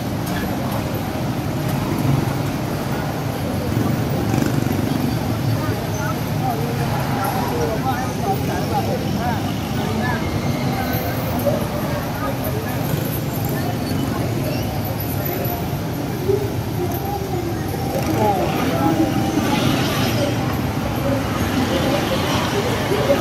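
Traffic rumbles steadily on a busy road below.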